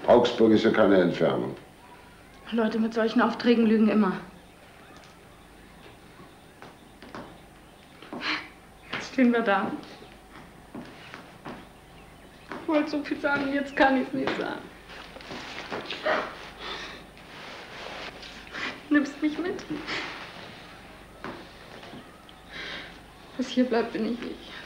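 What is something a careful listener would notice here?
A woman speaks quietly and emotionally close by.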